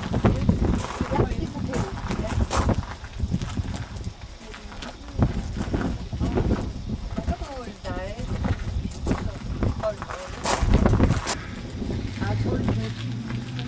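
Wind buffets outdoors with a low rumble.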